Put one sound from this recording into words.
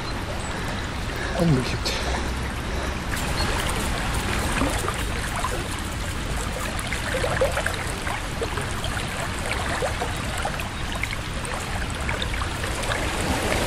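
A stream flows and gurgles nearby.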